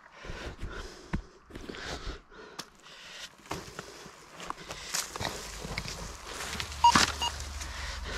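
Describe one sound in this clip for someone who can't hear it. A walking stick taps and scrapes on rocky ground.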